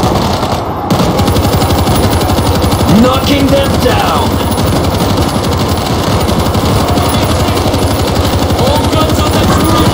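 A heavy machine gun fires rapid bursts at close range.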